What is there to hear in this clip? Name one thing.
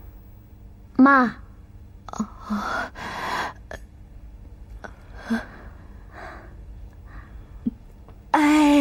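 An older woman speaks with surprise, close by.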